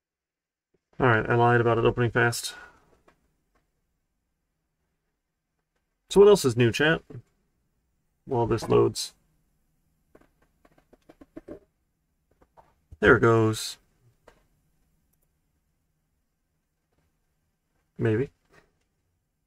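A man speaks calmly into a close microphone in short bursts.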